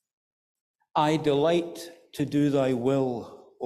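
A middle-aged man speaks slowly into a microphone.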